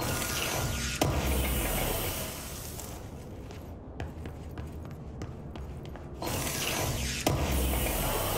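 A metal crate lid bangs open.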